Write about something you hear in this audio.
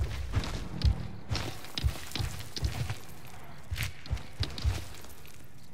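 A large creature's heavy footsteps thud steadily.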